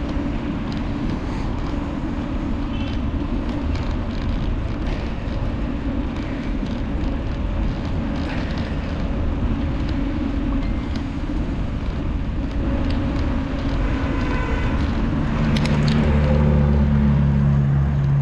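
Traffic hums along a nearby road.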